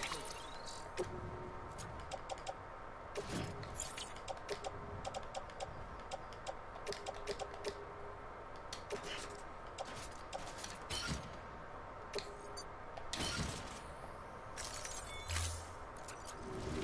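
Short electronic clicks and beeps sound as menu items are selected.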